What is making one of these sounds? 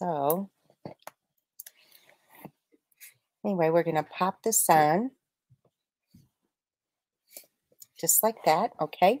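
Paper rustles softly as hands fold it.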